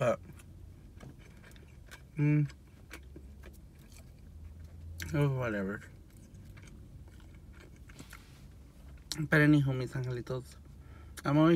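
A young man chews food.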